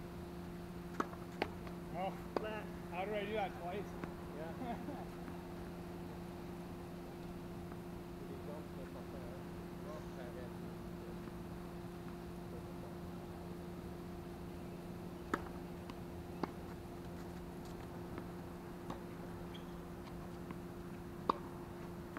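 A tennis racket strikes a ball in the distance.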